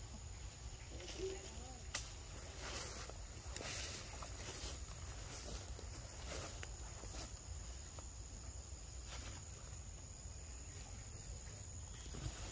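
Monkeys rustle through leaves on the ground.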